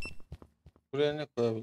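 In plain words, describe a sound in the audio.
A man speaks into a microphone close by.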